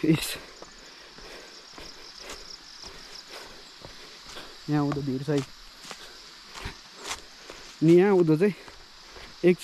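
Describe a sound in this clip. Footsteps scuff on rocky ground.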